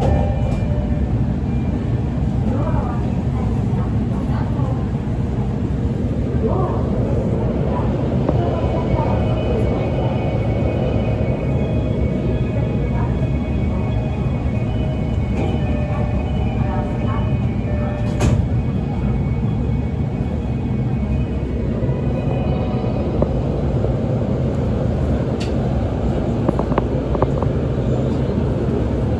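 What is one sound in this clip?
A train's motors hum steadily and low.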